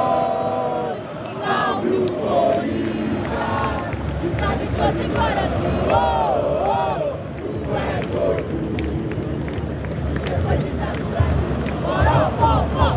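A huge stadium crowd sings and chants loudly outdoors.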